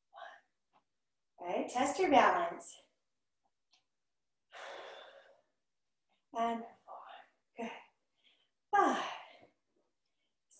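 A woman speaks energetically in short bursts, close by.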